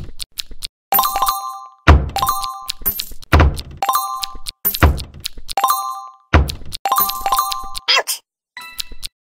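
Bright electronic game chimes ring out in quick repeated bursts.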